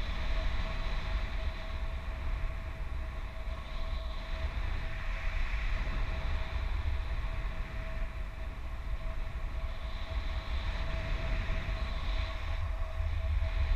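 Wind rushes and buffets loudly against a microphone.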